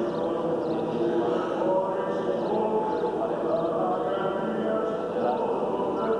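A group of men chant together in a slow, steady drone, echoing in a large hall.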